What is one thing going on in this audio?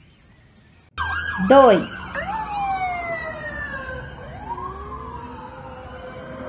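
A dog howls long and loud, the pitch sliding up and down.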